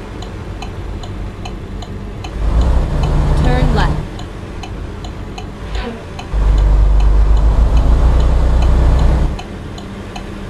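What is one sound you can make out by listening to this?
A turn signal ticks at a steady pace.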